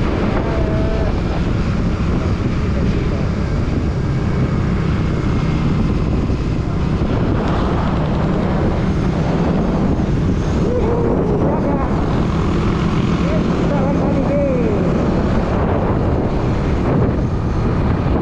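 Wind rushes loudly past, buffeting the microphone.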